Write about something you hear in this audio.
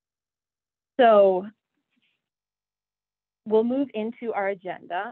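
A woman speaks calmly through an online call microphone.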